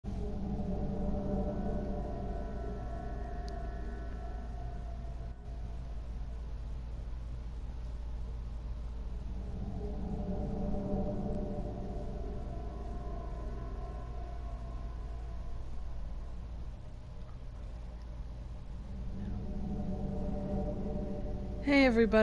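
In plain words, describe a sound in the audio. Dark, droning menu music swells and fades slowly.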